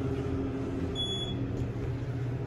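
An elevator chimes with a short beep.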